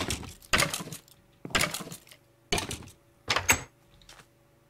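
A pickaxe strikes a stone block with repeated knocks.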